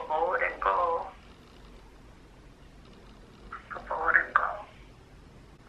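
A young man speaks quietly on a phone, close by.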